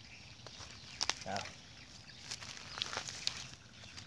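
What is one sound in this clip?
Sandals scuff and crunch on dry ground.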